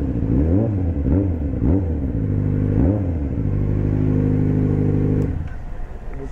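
A motorcycle engine idles with a low, steady rumble, then cuts off.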